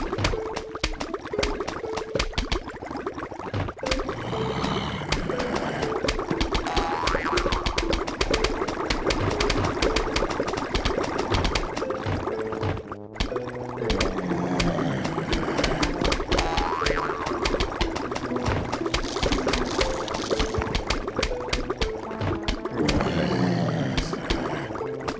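Rapid soft pops of game shots fire over and over.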